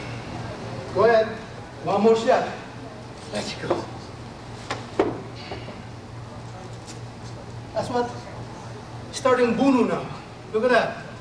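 A man speaks loudly in short bursts.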